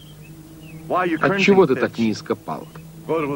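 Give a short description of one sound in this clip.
A man speaks weakly and breathlessly close by.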